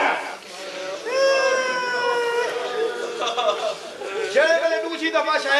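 A man chants loudly in long, drawn-out notes.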